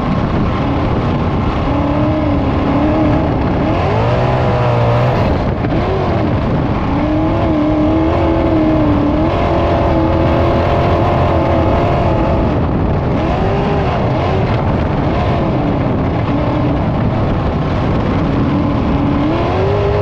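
Tyres rumble and crunch over a dirt track.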